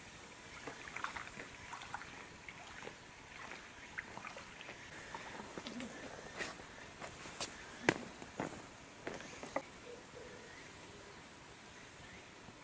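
A shallow stream trickles over rocks.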